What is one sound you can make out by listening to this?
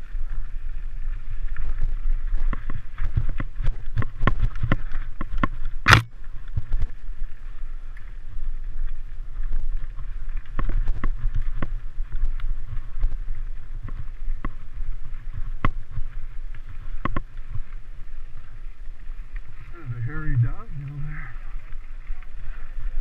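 Bicycle tyres rattle and crunch over a rough dirt trail.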